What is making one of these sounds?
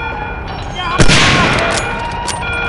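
A scoped bolt-action rifle fires a single shot.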